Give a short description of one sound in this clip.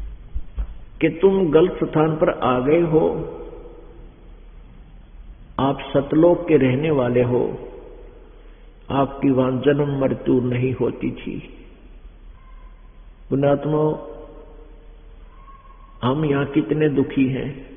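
An elderly man speaks with animation through a microphone, in bursts with pauses.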